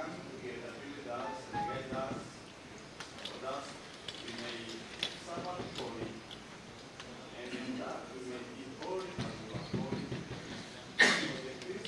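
A crowd of men and women murmur and chat in a large echoing hall.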